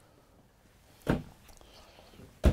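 A cabinet door bumps shut with a wooden knock.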